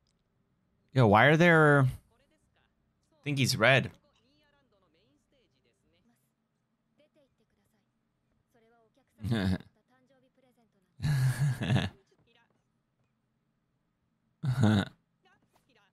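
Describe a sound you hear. A young man speaks in short, lively bursts close into a microphone.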